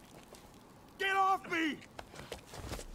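A young man shouts in alarm.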